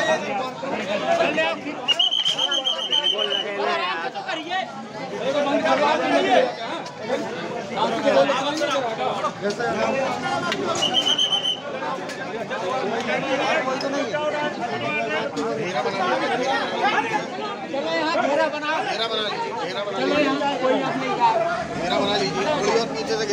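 A crowd of men talks and shouts close by, all at once.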